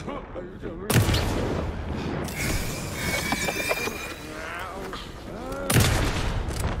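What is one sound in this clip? A gun fires loudly in short bursts.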